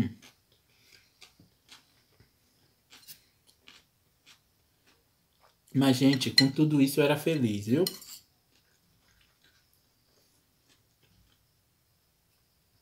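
A fork clinks and scrapes against a ceramic plate.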